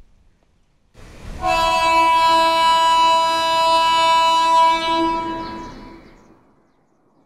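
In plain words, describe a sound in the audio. A train horn blares loudly and steadily, then fades.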